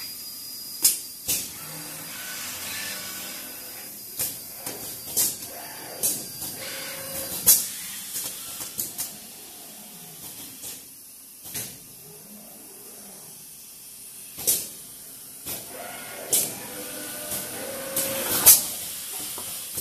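Industrial robot arms whir as their servo motors move them.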